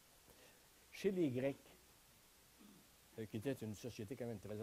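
An elderly man speaks calmly to an audience.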